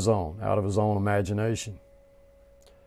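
An older man speaks calmly and closely into a microphone.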